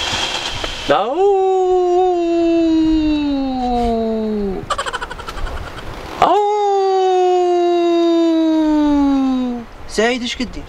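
A young man sings long, drawn-out notes that slide downward.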